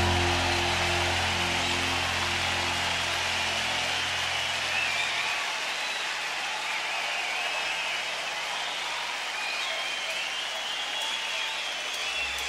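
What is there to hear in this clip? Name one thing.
A large outdoor crowd cheers, whistles and applauds.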